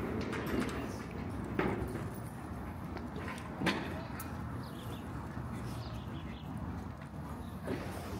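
A small dog chews a treat from a hand up close.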